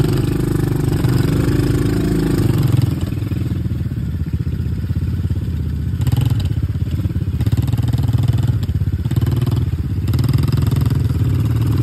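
Tyres crunch and squelch over a muddy dirt track.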